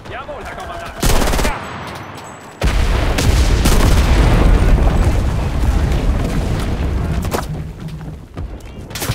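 A loud explosion booms nearby and rumbles.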